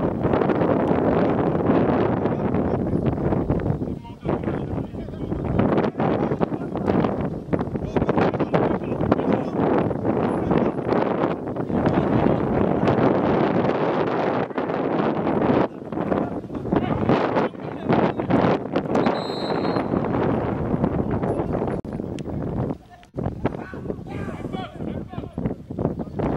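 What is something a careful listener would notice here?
A small crowd of spectators murmurs and calls out from the edge of an open field.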